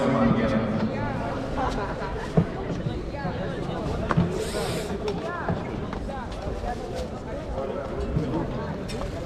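A crowd chatters and calls out across a large echoing hall.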